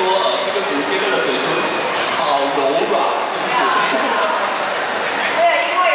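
A woman speaks into a microphone, heard through loudspeakers in a large echoing hall.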